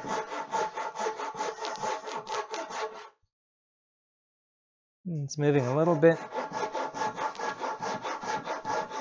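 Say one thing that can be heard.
A hand saw cuts through wood in quick, steady strokes.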